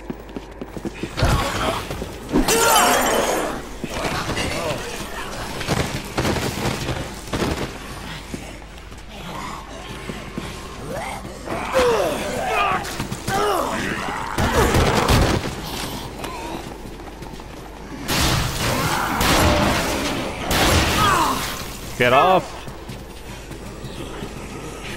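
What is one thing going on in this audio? Heavy blows thud and smack repeatedly.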